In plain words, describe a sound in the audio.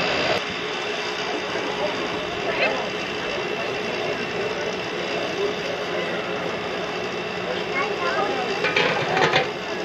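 A crowd of adults and children chatters nearby outdoors.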